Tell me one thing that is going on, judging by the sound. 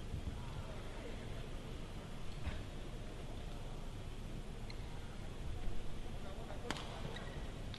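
Rackets strike a shuttlecock with sharp taps in a large echoing hall.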